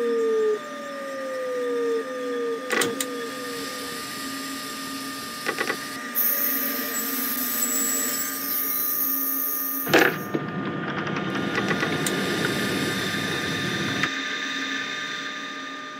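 An electric train's motors hum steadily.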